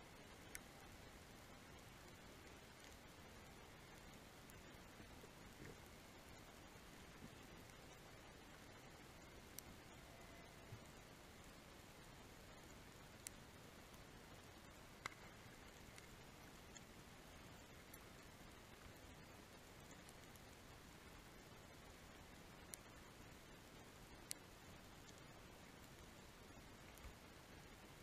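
A steady underwater hiss and rush fills the water.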